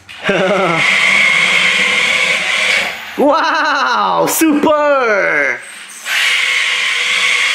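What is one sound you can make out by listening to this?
A toy car's electric motor whirs as it drives across the floor.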